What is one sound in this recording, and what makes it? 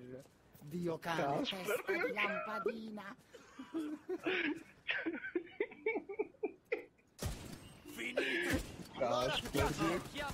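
A young man talks animatedly and laughs into a close microphone.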